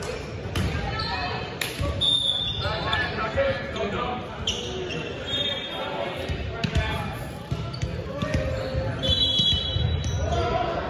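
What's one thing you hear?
A volleyball is struck with sharp smacks in a large echoing gym.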